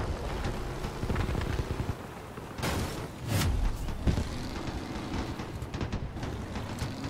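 A vehicle engine rumbles as it drives over rough ground.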